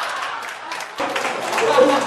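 A man laughs loudly nearby.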